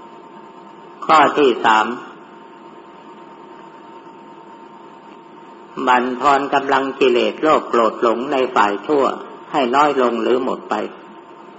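An elderly man speaks calmly.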